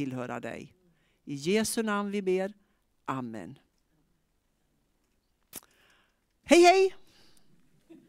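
A middle-aged woman speaks calmly into a microphone nearby.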